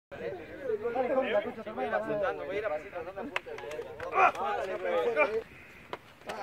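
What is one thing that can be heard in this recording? A group of young men talk and shout together outdoors, close by.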